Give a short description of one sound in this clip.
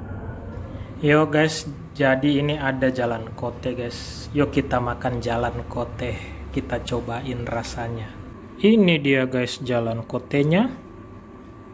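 A young man talks animatedly and close up.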